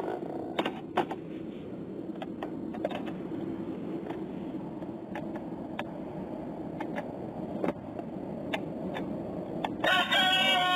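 Plastic clicks and knocks as a toy is handled.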